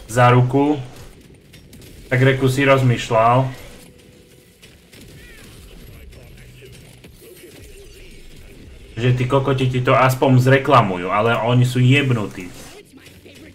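A man talks with animation, close to a microphone, in short bursts.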